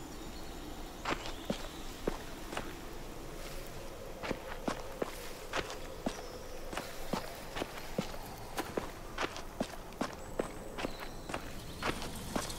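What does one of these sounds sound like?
Footsteps crunch on gravel and dry ground.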